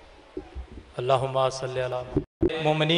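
A man chants loudly through a loudspeaker.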